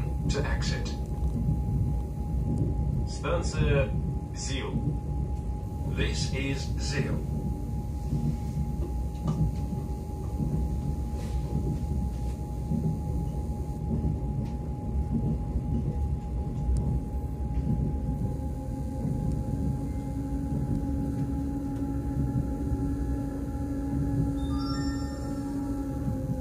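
A train rumbles along steadily, heard from inside a carriage.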